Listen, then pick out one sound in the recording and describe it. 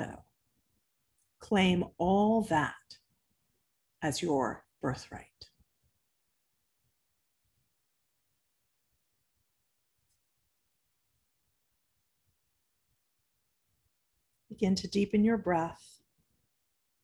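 A middle-aged woman speaks calmly into a nearby microphone, in short bursts with long pauses.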